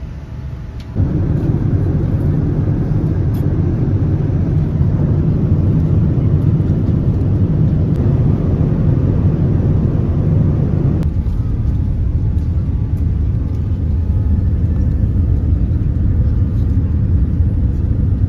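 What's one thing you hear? A jet engine roars steadily and low inside an aircraft cabin.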